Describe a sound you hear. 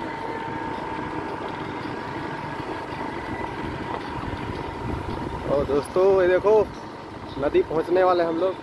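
A motorcycle engine hums steadily.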